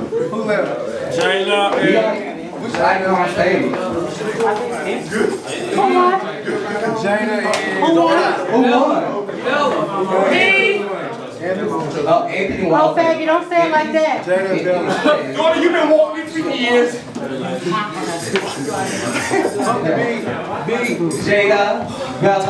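A crowd of men and women chatters loudly nearby.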